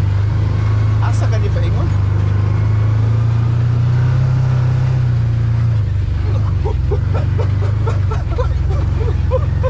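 A man talks close by, over the engine.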